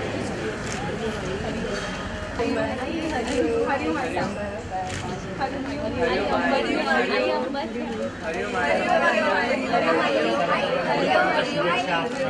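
A middle-aged woman speaks warmly up close.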